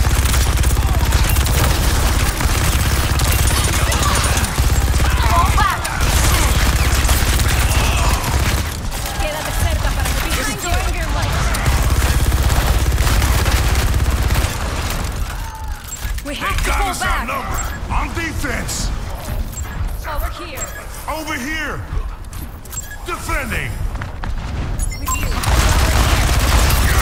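Heavy guns fire in rapid, loud bursts.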